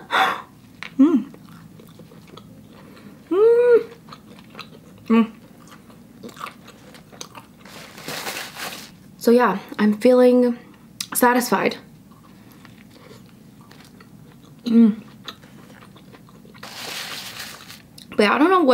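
A young woman chews food and crunches loudly.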